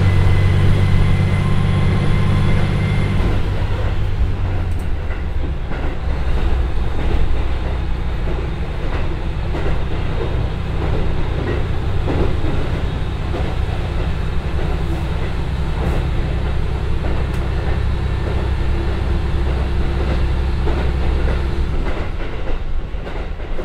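A train rumbles and rattles along the rails.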